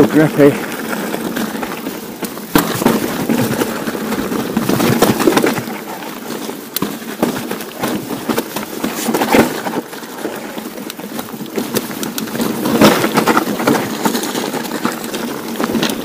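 A bicycle's frame and parts clatter and knock over bumps.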